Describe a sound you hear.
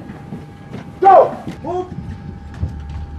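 A man shouts a sharp command.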